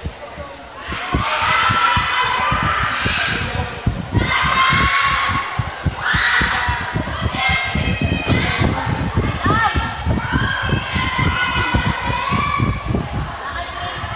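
Pop music with a thumping beat plays loudly over loudspeakers.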